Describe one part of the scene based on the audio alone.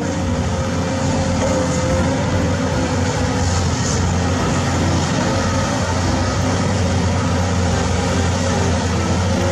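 Steel tracks of a bulldozer clank and squeal as it moves.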